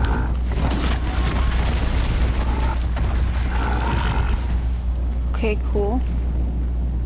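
Metal clanks and crunches as a machine creature is struck.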